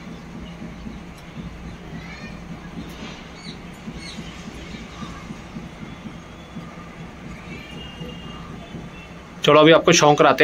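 Pigeons coo softly nearby.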